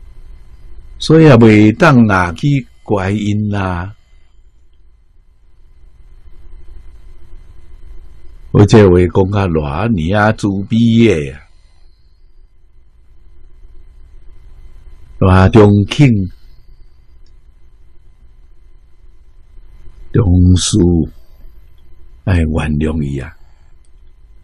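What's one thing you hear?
An elderly man speaks calmly into a microphone, in short phrases with long pauses.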